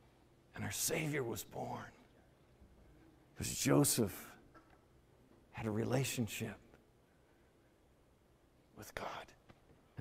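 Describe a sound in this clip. A middle-aged man speaks with animation through a microphone, in short bursts with pauses.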